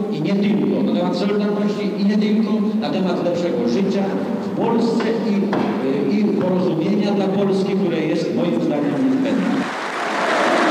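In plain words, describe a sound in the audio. A middle-aged man speaks forcefully into a microphone over loudspeakers.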